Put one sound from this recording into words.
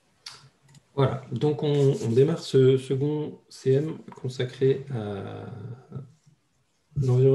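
A man speaks calmly and close to a microphone, in short bursts with pauses.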